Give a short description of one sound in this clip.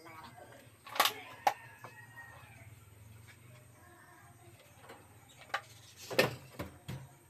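A wooden cage thumps down onto a hard floor.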